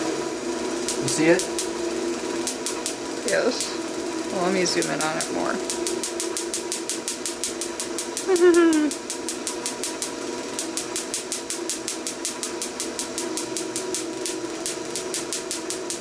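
A spark igniter snaps with quick, repeated clicks.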